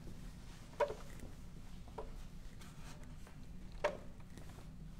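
Small parts of a sewing machine click under someone's fingers.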